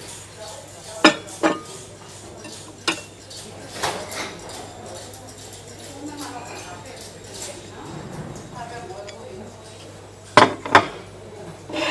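Porcelain cups and saucers clink against a wooden shelf.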